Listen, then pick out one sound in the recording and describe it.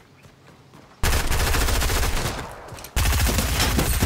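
A gun fires rapid bursts of loud shots.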